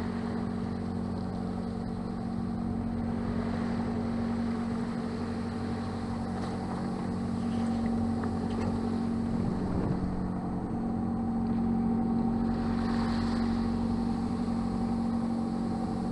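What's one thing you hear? Waves wash and splash against the hull of a moving boat.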